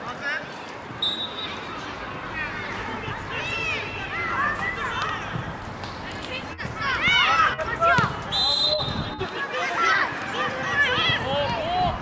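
Children shout excitedly across an open field outdoors.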